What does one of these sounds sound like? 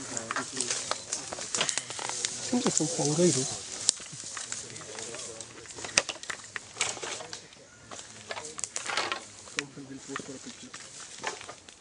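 Footsteps crunch and rustle on dry leaves and bamboo.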